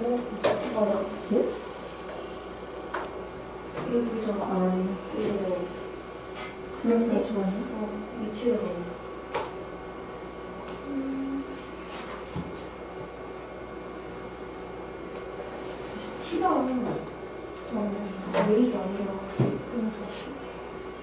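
A young woman speaks calmly and close by, heard through a microphone, with pauses.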